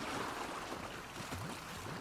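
A horse splashes through shallow water.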